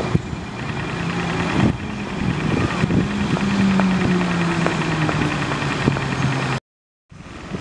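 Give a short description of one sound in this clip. A car engine hums nearby in outdoor street traffic.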